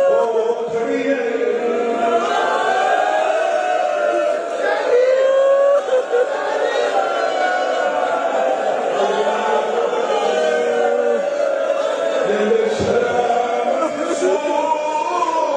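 A crowd of men cries out and chants along.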